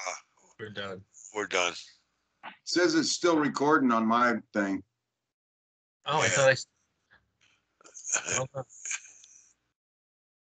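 An older man speaks over an online call.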